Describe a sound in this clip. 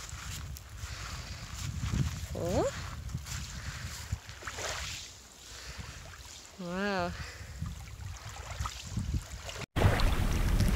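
Shallow water laps gently over pebbles.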